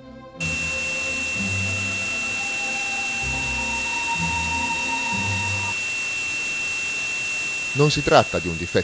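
A portable radio hisses and hums steadily.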